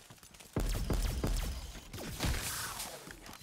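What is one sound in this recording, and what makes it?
Gunshots boom in rapid bursts.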